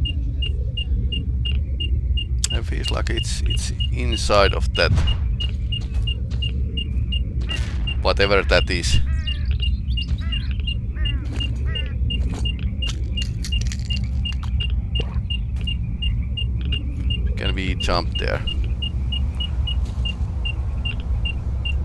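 A detector beeps steadily in a quick, even rhythm.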